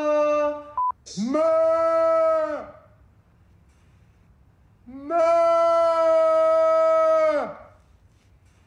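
A man sings a long, high held note over an online call.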